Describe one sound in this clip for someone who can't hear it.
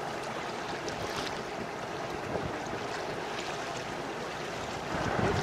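Water splashes and laps against a sailing boat's hull.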